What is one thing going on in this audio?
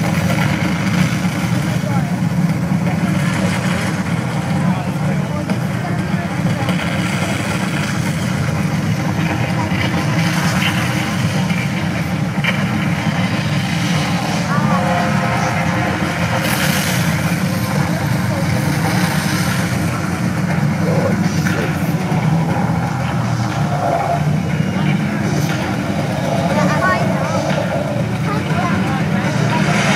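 A crowd of people chatters and murmurs outdoors.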